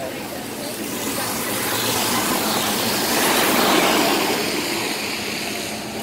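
A bus roars past close by.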